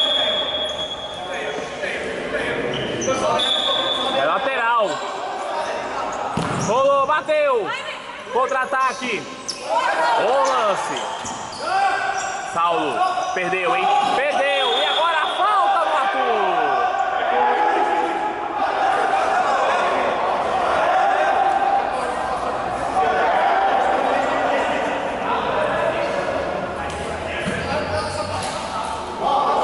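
Men shout and call out during a game.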